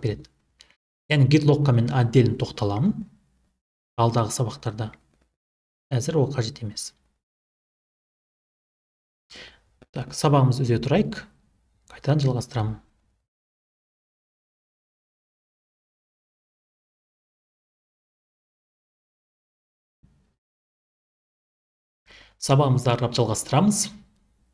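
A young man speaks calmly into a close microphone, in bursts with pauses.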